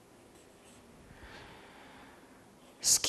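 A marker scratches on paper.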